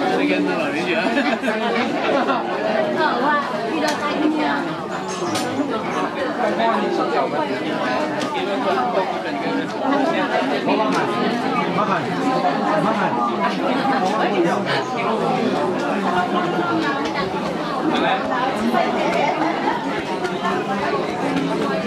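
A large crowd of men and women chatters all around, close by.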